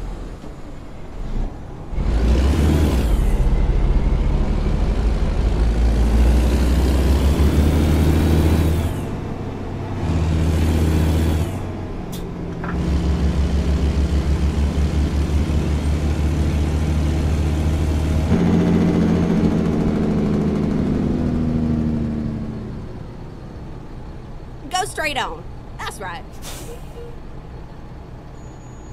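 A truck engine rumbles and revs through gear changes, then settles to a low idle.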